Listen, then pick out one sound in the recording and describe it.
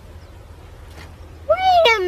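A young boy speaks briefly, close by.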